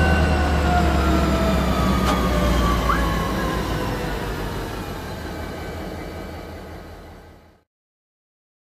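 A locomotive engine rumbles steadily, then fades away.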